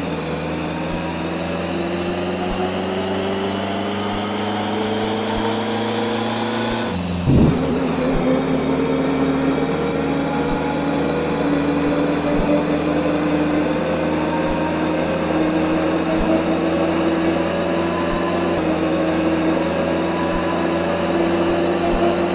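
A car engine revs up steadily, drops briefly at a gear change, then climbs again.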